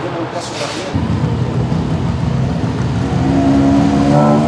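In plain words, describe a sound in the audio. A race car engine idles with a deep rumble.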